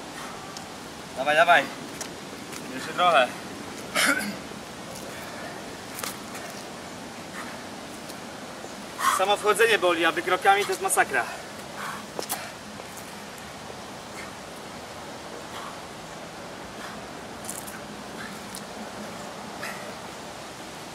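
Footsteps tread on paving stones.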